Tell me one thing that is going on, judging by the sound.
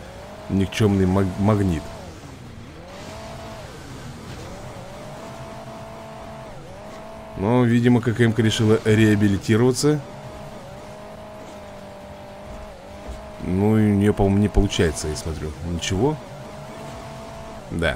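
A small engine hums and revs steadily, rising and falling in pitch.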